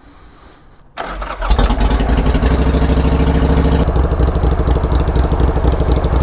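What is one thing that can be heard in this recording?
A motorcycle engine suddenly roars loudly close by.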